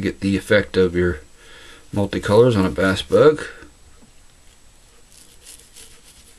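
A razor blade snips and scrapes through stiff fibres.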